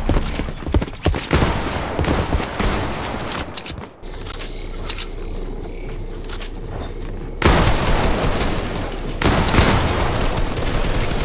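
Wooden building pieces clatter and knock into place in quick bursts.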